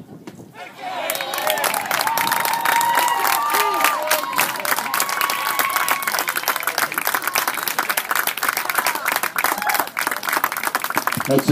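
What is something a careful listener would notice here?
Spectators clap their hands rapidly.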